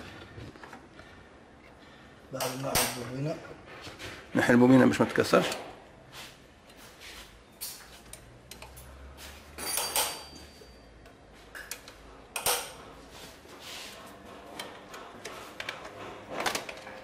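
Metal tools click and clatter against engine parts.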